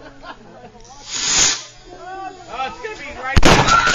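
A firework hisses and sprays sparks.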